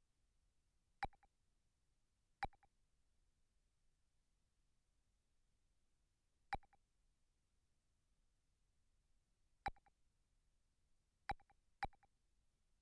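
Short menu blips sound as a selection moves through a list.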